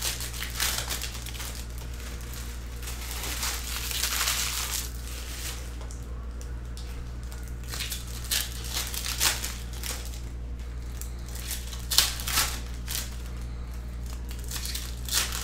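A foil card wrapper crinkles and tears as it is opened.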